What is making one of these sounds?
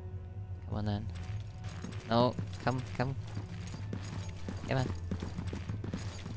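Heavy armoured footsteps thud on a metal floor.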